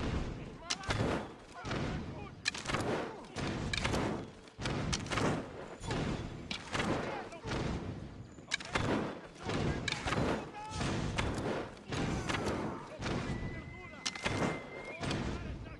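A bowstring twangs as arrows are shot.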